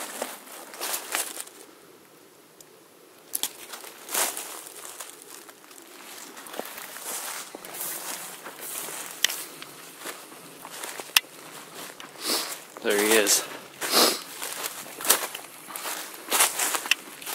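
Footsteps crunch through dry fallen leaves.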